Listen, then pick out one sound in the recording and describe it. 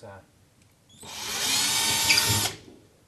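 A cordless drill whirs loudly.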